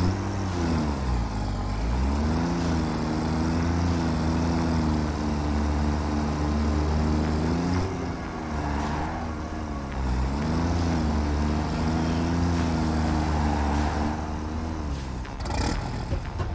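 A vehicle engine hums and rises in pitch as it drives.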